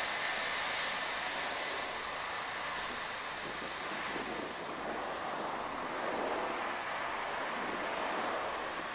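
A four-engine jet cargo plane roars on the runway.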